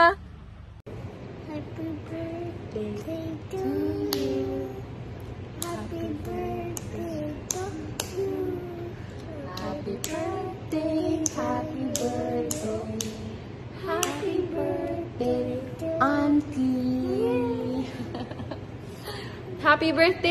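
A young woman talks cheerfully close by.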